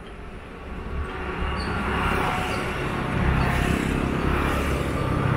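A motorbike engine grows louder as it approaches.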